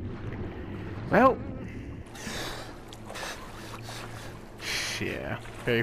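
Water sloshes and splashes as someone wades out of it.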